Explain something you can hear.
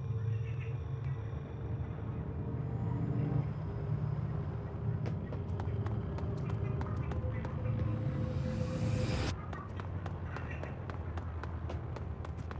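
Light footsteps patter quickly on hard ground.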